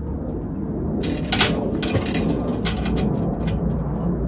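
A tool clicks and scrapes against a metal frame close by.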